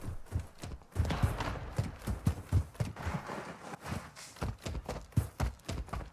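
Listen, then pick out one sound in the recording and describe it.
Footsteps thud quickly over dry ground.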